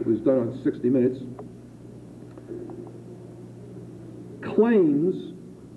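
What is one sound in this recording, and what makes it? An elderly man speaks calmly through a microphone, with pauses.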